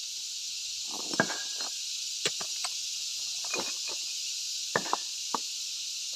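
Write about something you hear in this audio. Pieces of stone clatter and scrape as they are shifted by hand.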